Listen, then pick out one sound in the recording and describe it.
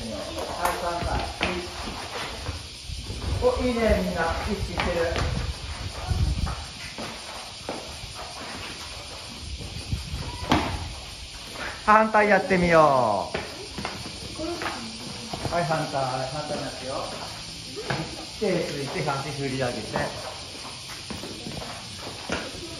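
Children's shoes patter and scuff on a hard floor.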